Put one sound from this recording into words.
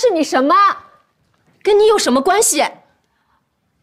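A woman speaks sharply and with emotion, close by.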